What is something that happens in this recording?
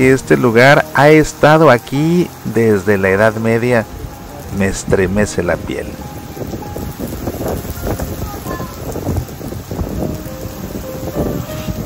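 Light rain falls steadily on a wide paved square outdoors.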